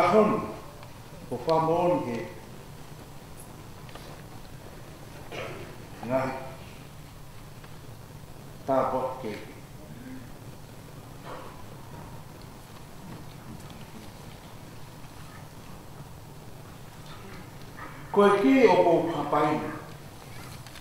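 A man reads out slowly into a microphone, in short phrases with long pauses.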